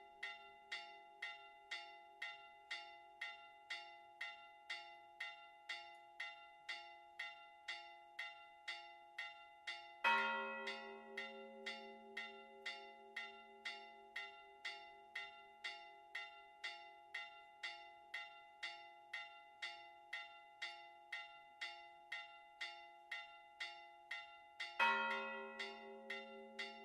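Church bells ring rapidly in a quick, even peal.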